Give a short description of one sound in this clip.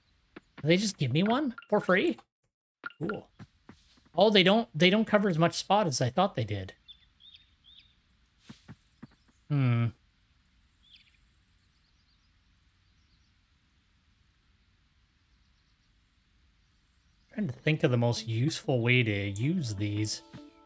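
A man talks casually and with animation into a close microphone.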